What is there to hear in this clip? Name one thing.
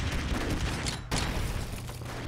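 An explosion bursts with a short boom.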